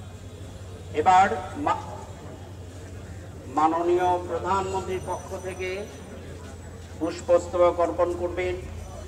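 A man speaks loudly close by, in short bursts.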